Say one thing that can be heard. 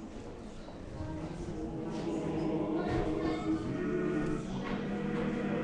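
A group of people sing together in a large echoing hall.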